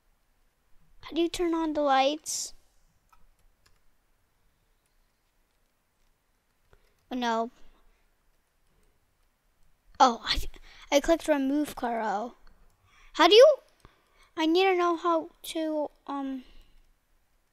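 A young boy talks with animation into a close microphone, in short bursts.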